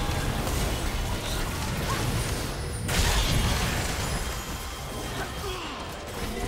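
Game spells and weapon blows clash in a fast battle.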